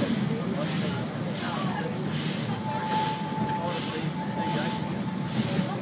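A train carriage rumbles and rattles steadily along the track.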